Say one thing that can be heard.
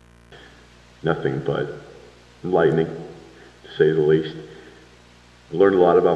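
A man speaks formally through a microphone and loudspeakers, in pauses between phrases.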